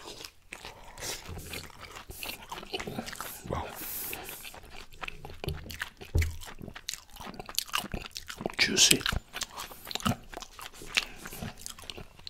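A man chews food wetly close to a microphone.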